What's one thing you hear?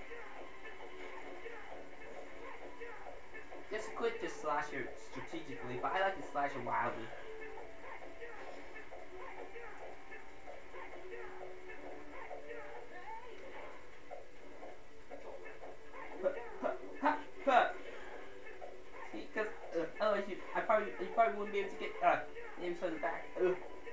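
Video game music plays through a small television speaker.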